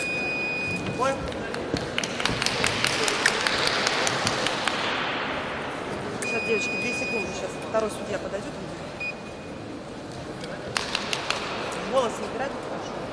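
Sports shoes squeak sharply on a hard floor in a large echoing hall.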